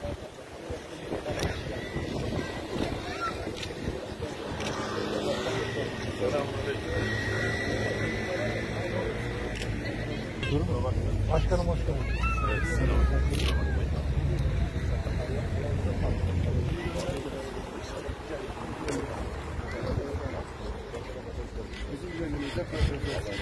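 A crowd of men chat and greet each other outdoors.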